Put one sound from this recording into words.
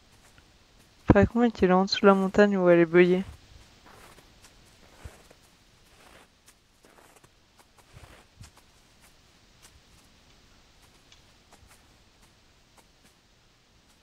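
Footsteps crunch softly on snow.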